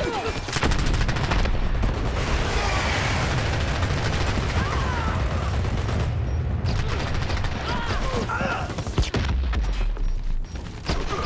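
Explosions rumble with a deep boom.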